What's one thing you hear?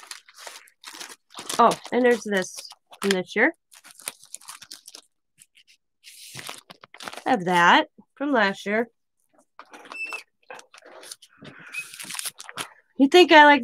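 Plastic sticker sheets rustle and crinkle as they are handled.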